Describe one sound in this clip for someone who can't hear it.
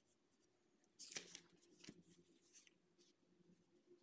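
Paper pages rustle as a book is handled.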